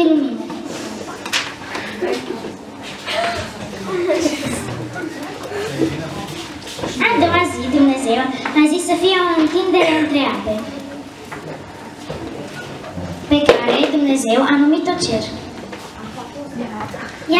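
Children's voices chatter in a room with some echo.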